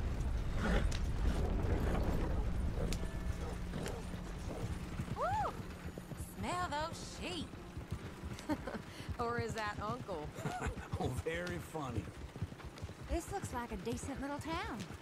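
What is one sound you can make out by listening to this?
Horse hooves clop steadily on the dirt.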